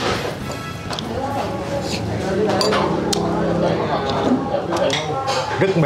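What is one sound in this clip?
A man slurps noodles.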